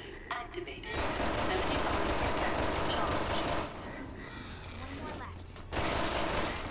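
A pistol fires several shots in quick succession.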